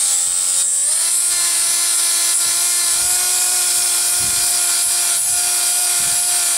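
An angle grinder grinds harshly against metal.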